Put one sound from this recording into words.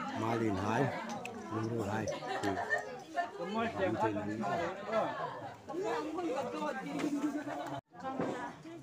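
Several children and adults chatter nearby.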